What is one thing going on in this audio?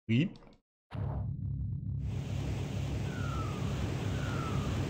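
Video game music plays.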